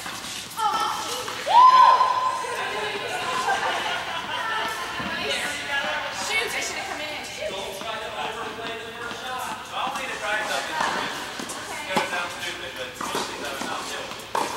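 Young women call out and talk across the courts in an echoing hall.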